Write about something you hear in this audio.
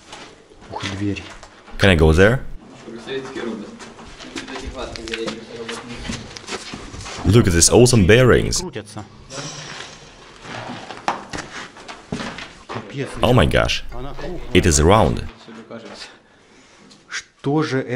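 A man talks with animation nearby in an echoing space.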